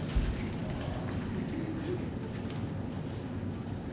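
A young man speaks on a stage, heard from the back of a hall.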